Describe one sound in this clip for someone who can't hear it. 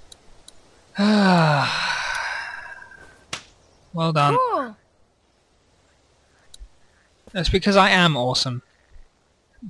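A young boy speaks with animation close by.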